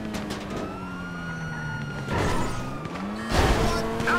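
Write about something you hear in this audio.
A car lands hard with a thud after a jump.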